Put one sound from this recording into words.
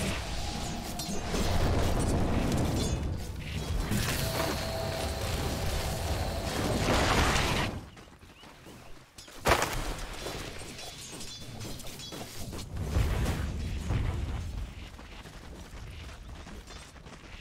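Game weapons clash and spells crackle and burst in a busy fight.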